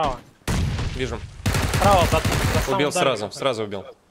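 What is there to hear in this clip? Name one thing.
A rifle fires a burst of shots.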